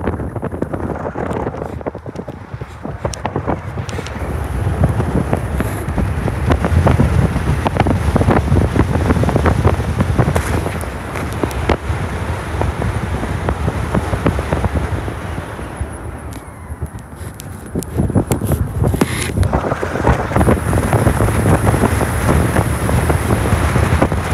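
A car drives along a road, its engine rumbling steadily.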